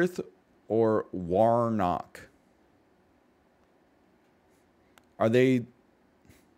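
A man speaks close to a microphone in short, drawn-out phrases.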